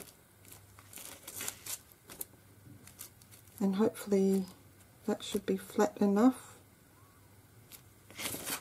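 Stiff paper slides and rustles.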